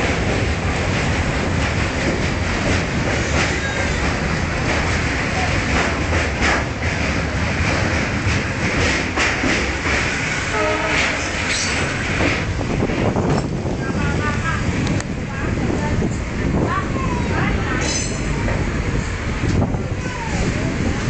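Small waves lap gently at a rocky shore.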